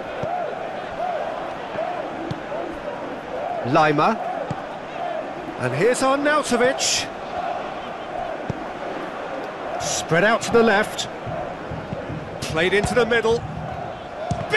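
A large stadium crowd chants and cheers steadily.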